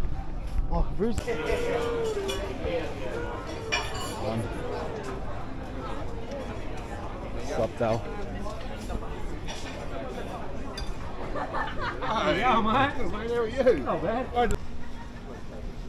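A crowd of men and women chatter and talk nearby outdoors.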